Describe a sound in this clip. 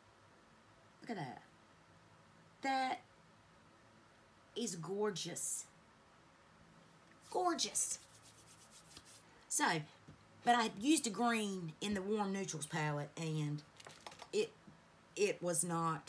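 A woman talks close by, calmly and with animation.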